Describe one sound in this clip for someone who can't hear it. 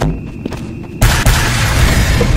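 A rocket launcher fires with a loud whoosh and blast.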